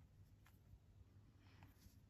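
A brush tip dabs in a paint pan.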